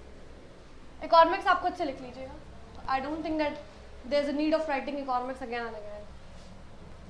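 A young woman speaks clearly and close by.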